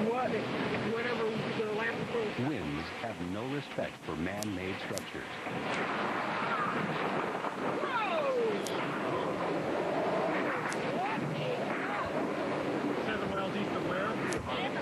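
Strong wind roars and howls in gusts.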